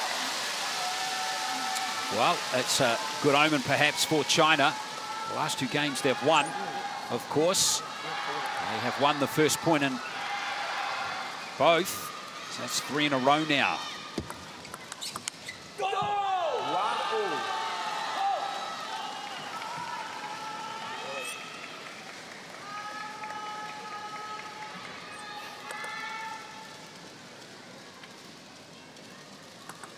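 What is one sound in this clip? A large crowd murmurs in an echoing hall.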